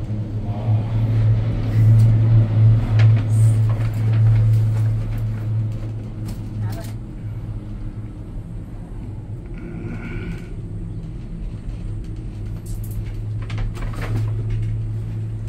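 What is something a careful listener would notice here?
A cable car hums steadily as it glides along its cable.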